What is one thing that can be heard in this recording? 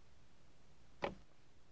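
A record player's needle drops onto a record with a sharp click.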